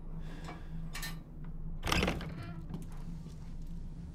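A wooden door unlocks and creaks open.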